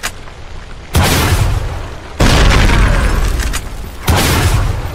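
Heavy rifle shots boom.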